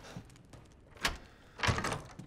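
A door lock clicks.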